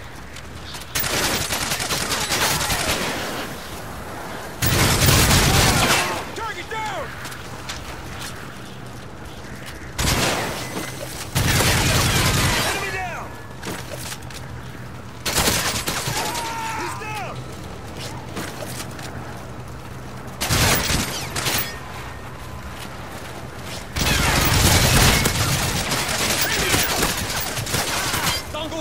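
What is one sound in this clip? Video game gunfire and explosions crackle in loud bursts.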